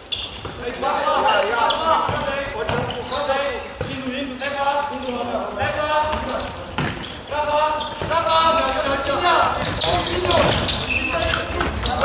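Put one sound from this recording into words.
A ball thumps as it is kicked.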